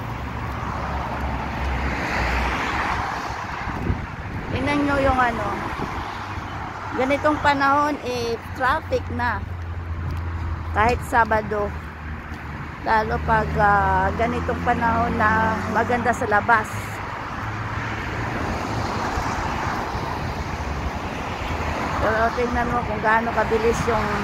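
Traffic rushes past steadily on a busy road below.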